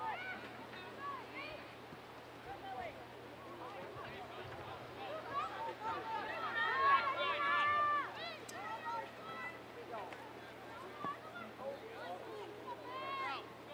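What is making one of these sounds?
Young women shout to each other across an open field in the distance.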